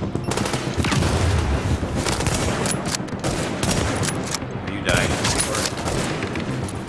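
An explosion booms and roars.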